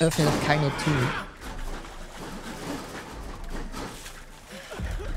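A fleshy creature squelches and slithers.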